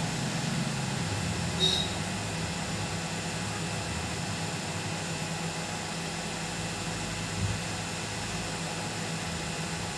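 A small electric tool hums steadily close by.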